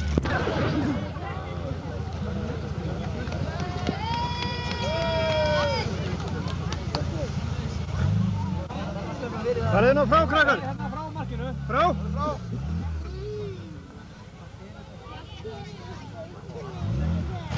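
A crowd of people cheers and shouts outdoors.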